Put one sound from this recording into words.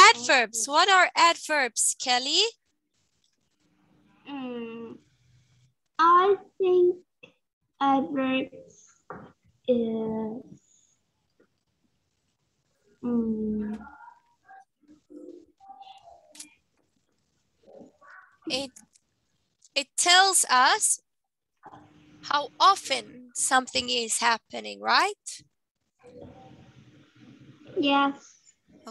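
Another woman speaks calmly over an online call.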